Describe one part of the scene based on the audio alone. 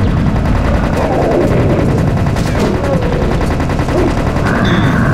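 A monster growls.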